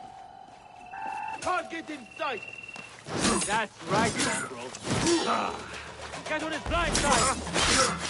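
Metal swords clash and ring sharply, again and again.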